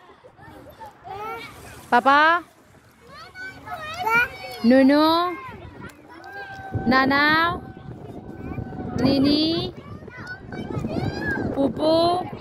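A toddler makes high-pitched vocal sounds close by.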